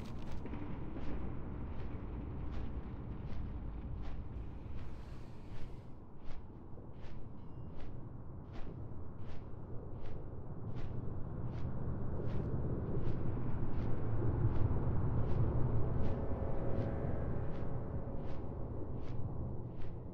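Large wings flap in a steady rhythm.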